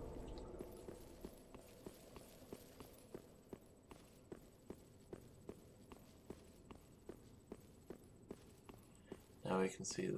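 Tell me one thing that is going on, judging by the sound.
Armoured footsteps clank quickly on stone.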